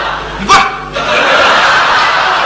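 An audience laughs and cheers in a large hall.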